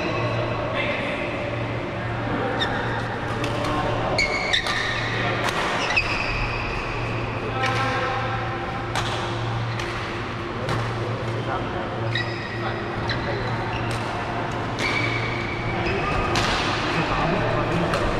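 Rackets hit a shuttlecock with sharp pops in a rally.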